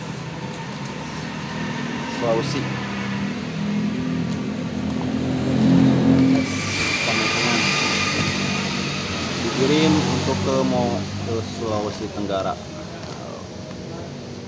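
Cardboard rustles and scrapes as hands fold and press it.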